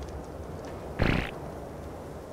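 A dinosaur snarls briefly.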